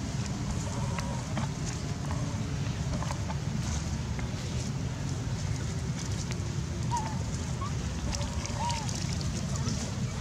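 Young monkeys squeak and chirp softly.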